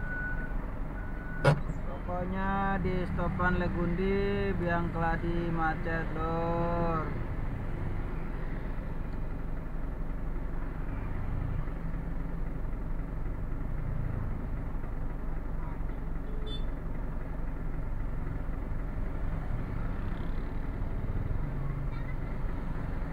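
A large truck engine idles with a steady low rumble.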